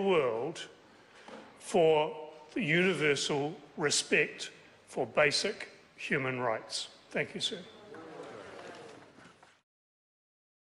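A middle-aged man speaks firmly into a microphone in a large echoing chamber.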